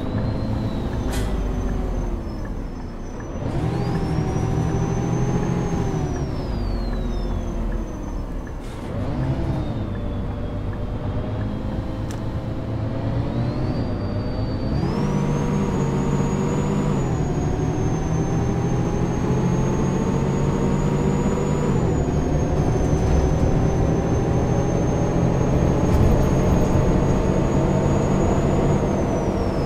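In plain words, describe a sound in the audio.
A bus engine hums and whines, rising and falling in pitch as it speeds up and shifts gears.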